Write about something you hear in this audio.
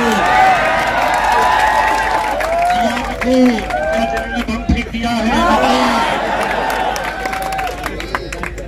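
A crowd of young men chants and shouts loudly together.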